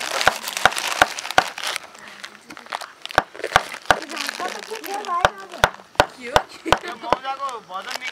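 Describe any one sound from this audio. A heavy tool knocks against wood with sharp, regular blows.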